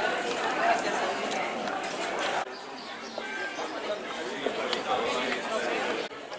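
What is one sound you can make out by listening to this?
A crowd of people chatters nearby.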